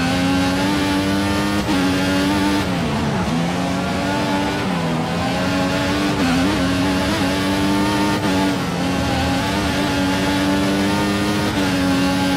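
A racing car engine screams at high revs, dipping as the driver shifts and brakes, then climbing again.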